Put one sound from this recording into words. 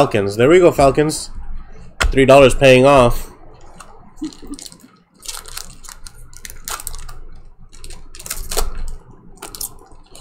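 Foil wrappers crinkle and rustle as card packs are handled.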